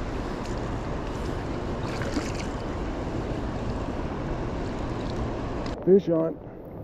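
A river rushes and gurgles nearby.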